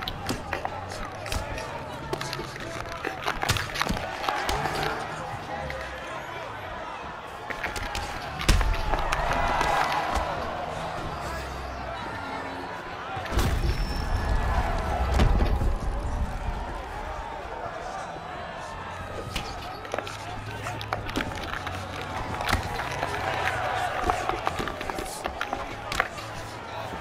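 A crowd murmurs and cheers in the background.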